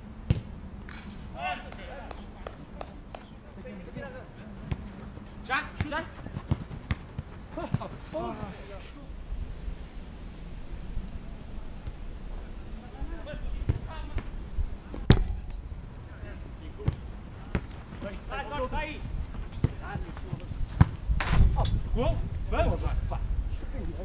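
Men shout to each other across an outdoor pitch.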